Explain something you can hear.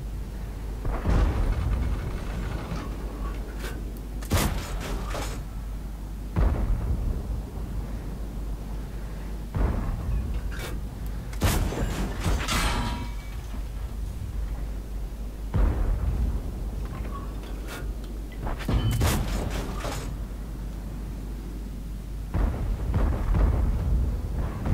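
Tank cannons fire with heavy, echoing booms.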